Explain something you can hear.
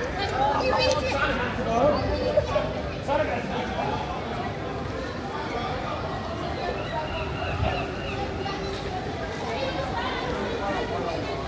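A small group of people chats outdoors at a distance.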